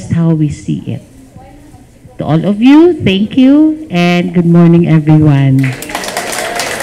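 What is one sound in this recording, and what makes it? A middle-aged woman speaks cheerfully through a microphone.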